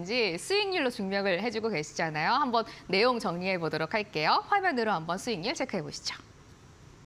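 A young woman speaks brightly and clearly into a microphone.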